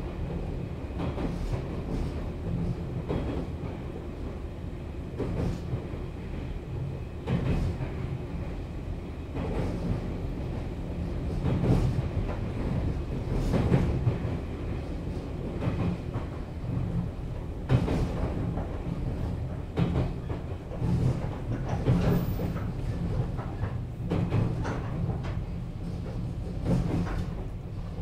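Train wheels clack over rail joints at uneven intervals.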